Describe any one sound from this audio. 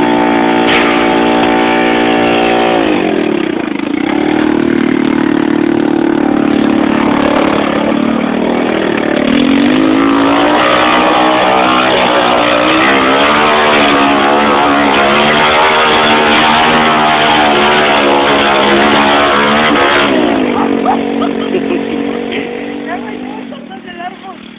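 An all-terrain vehicle's engine revs loudly and drones close by.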